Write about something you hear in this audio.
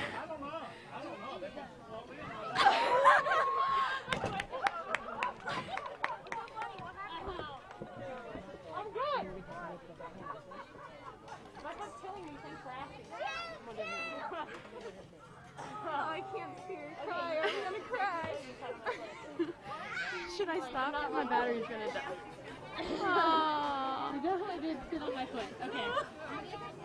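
A crowd of adults and children chatter nearby outdoors.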